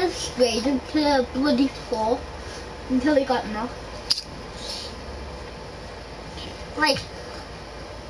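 A boy speaks with animation close to a microphone.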